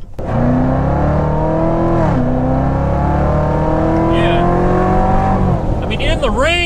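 A car engine revs up through the gears, rising in pitch and then easing off.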